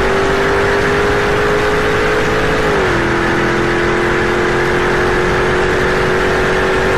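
Wind and road noise rush steadily around a fast-moving car.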